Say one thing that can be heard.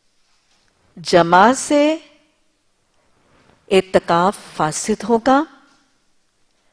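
A woman speaks slowly and clearly into a microphone, with pauses between phrases.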